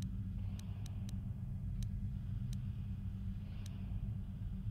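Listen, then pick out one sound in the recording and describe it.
Short menu clicks sound as a selection changes.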